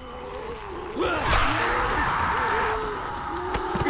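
An electric weapon crackles and zaps.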